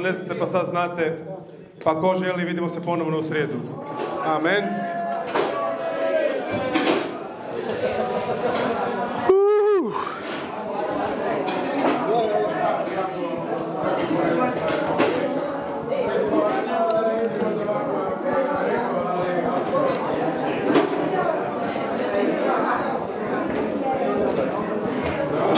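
A crowd of men and women talk and pray aloud at once in a large echoing hall.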